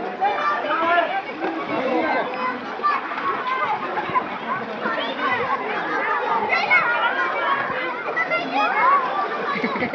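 Water splashes as swimmers thrash about.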